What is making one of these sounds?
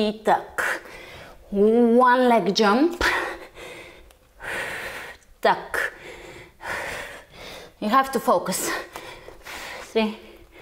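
A young woman speaks calmly and clearly, giving instructions.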